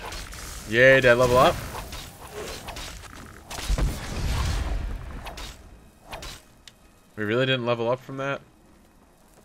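A man speaks animatedly into a close microphone.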